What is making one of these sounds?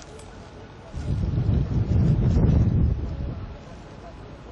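Wind gusts briefly across the microphone outdoors.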